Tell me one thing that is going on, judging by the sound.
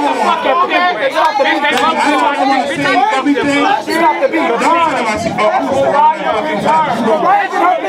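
A man speaks loudly and with animation through a microphone and loudspeaker.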